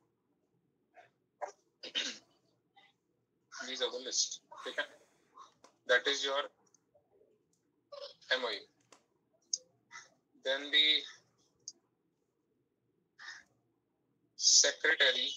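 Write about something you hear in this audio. A young man speaks calmly through an online call, in short phrases with pauses.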